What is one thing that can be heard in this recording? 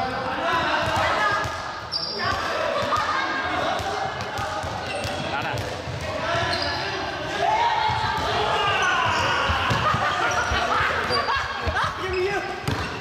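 Many young people shout and chatter throughout a large echoing hall.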